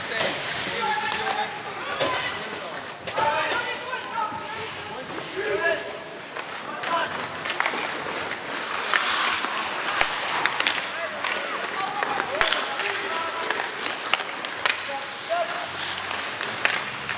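Spectators call out and chatter, echoing in a large hall.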